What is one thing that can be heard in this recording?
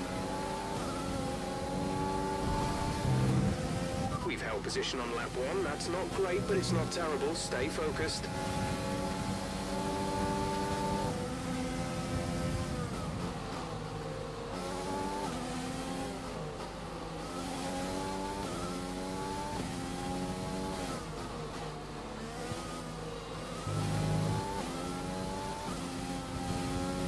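A racing car engine roars at high revs, its pitch climbing and dropping sharply with each gear change.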